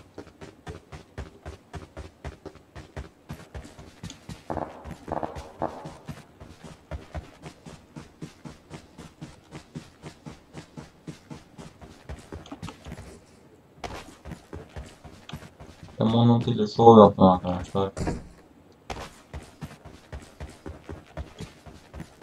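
Footsteps run quickly and steadily over the ground.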